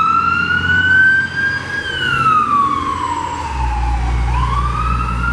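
A siren wails loudly, rising and falling in pitch as it passes close by.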